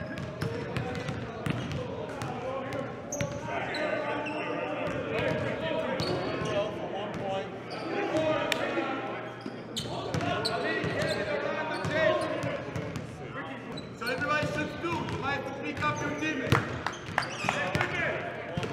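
Basketballs bounce on a hard court, echoing.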